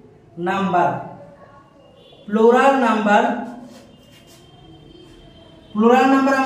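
A man speaks clearly in a drawn-out, teaching voice close by.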